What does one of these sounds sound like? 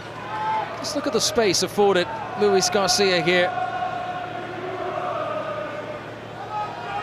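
A large crowd in a stadium murmurs and chants steadily.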